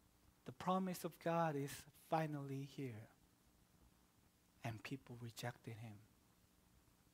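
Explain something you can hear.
A man speaks calmly and slowly through a microphone, with pauses.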